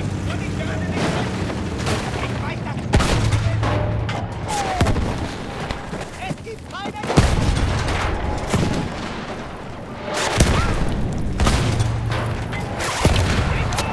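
A rifle fires loud, sharp shots that echo away.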